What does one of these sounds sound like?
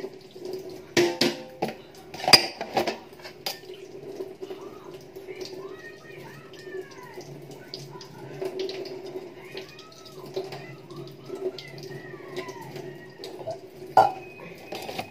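Metal utensils clatter and knock against a pot.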